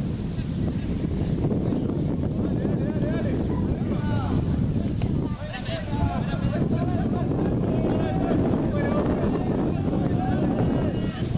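Young men call out to each other across an open field.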